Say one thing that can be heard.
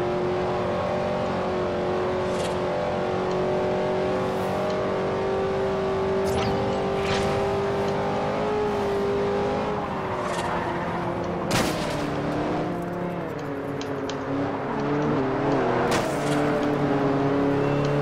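A racing car engine roars at high revs, shifting gears as it speeds up.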